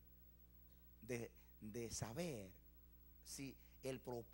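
A middle-aged man speaks with animation through a microphone and loudspeakers.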